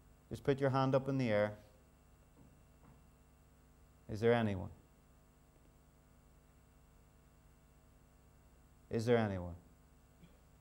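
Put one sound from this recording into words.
A man speaks in short bursts through a microphone, with long pauses.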